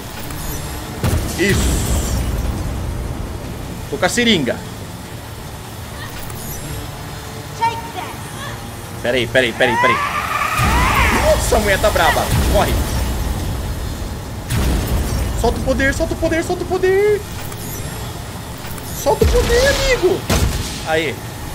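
Loud booms and rumbles of a game's explosions burst now and then.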